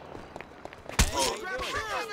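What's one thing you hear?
A knife slashes through the air.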